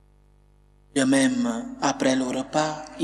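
A man speaks or sings clearly into a microphone.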